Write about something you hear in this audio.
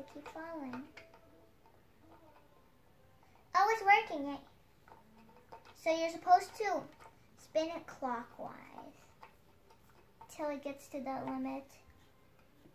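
A young girl talks calmly close by.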